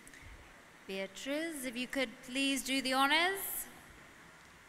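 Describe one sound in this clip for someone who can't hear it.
A woman speaks into a microphone over loudspeakers in a large hall.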